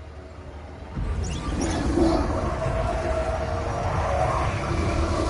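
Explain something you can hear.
A roaring gust of wind sweeps dust through the air.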